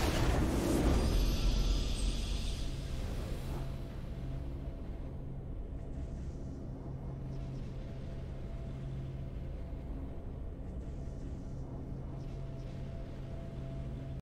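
A triumphant musical fanfare plays and holds steady tones.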